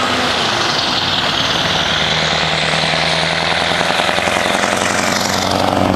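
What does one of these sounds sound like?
Tyres roar on the road as a truck passes close by.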